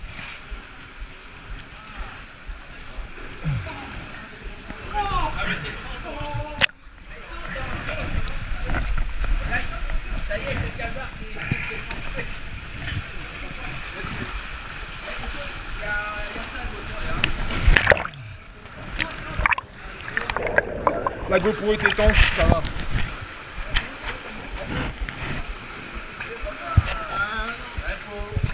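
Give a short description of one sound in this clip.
Water splashes and sloshes as a person wades through it.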